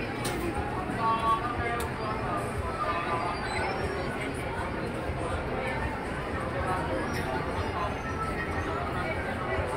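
A large crowd of children chatters in a big echoing hall.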